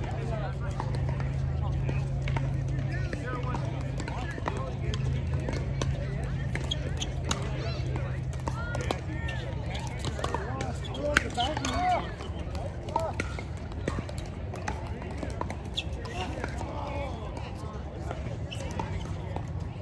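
Paddles hit a plastic ball with sharp pops outdoors.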